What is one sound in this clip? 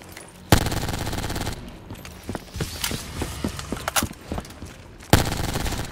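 Electric bolts crackle and zap.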